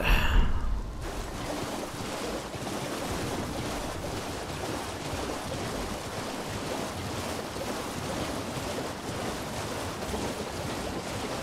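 Hooves splash quickly through shallow water.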